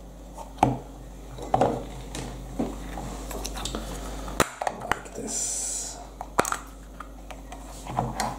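Plastic toy parts click and rattle as hands handle them.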